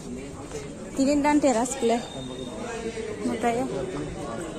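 Several people talk nearby outdoors.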